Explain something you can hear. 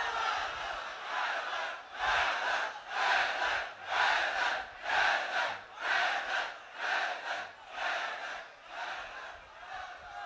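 A large crowd chants in a steady rhythm.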